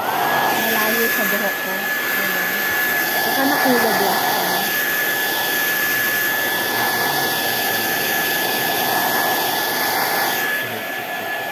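A hair dryer blows with a steady high whine.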